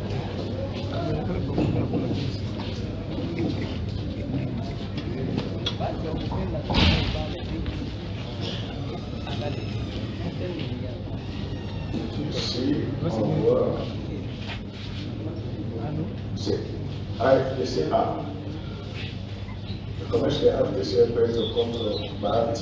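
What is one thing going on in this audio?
A crowd of people murmurs and talks in a large echoing hall.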